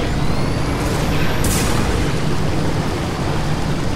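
Gunshots bang sharply.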